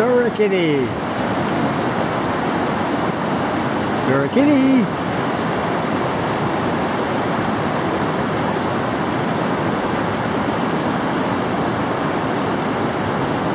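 A mountain stream rushes over rocks.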